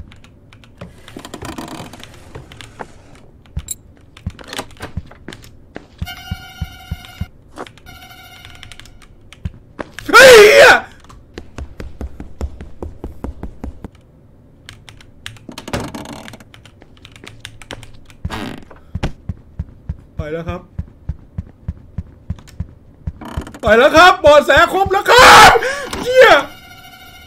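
A young man talks into a close microphone, now and then shouting excitedly.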